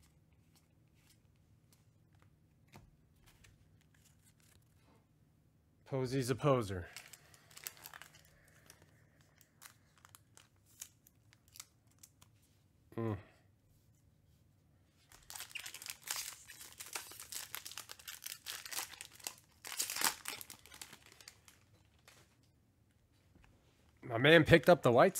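Trading cards rustle softly as they are shuffled by hand.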